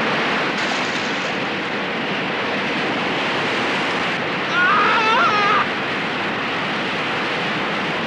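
Water splashes hard as a man thrashes in it.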